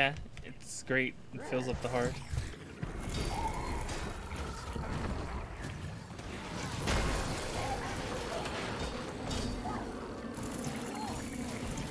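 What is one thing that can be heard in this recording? Magic spells crackle and burst in a fast fantasy battle.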